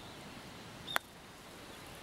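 A putter taps a golf ball with a light click.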